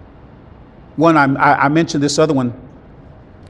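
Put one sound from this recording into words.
A middle-aged man speaks calmly into a clip-on microphone.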